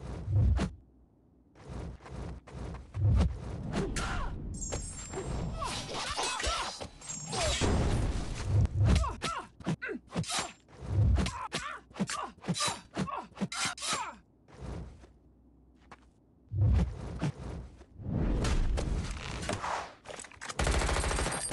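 Blades slash and blows thud in rapid bursts.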